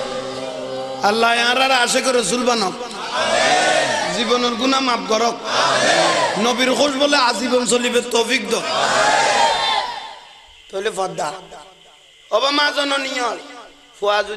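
A man preaches with animation through a microphone and loudspeakers.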